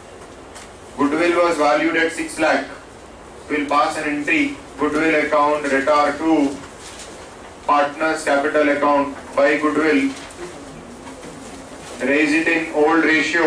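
A man speaks calmly into a microphone, lecturing.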